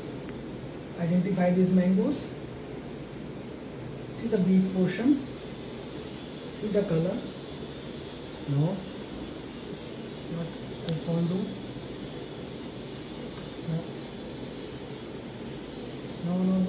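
A man speaks calmly and close by in short phrases.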